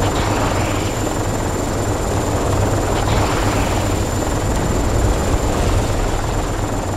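Explosions boom on the ground.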